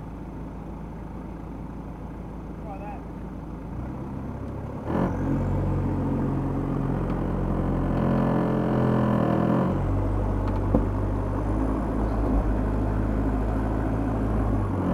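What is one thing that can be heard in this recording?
A vehicle engine idles with a low, steady hum.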